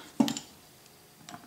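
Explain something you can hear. A metal tool clinks against a metal part.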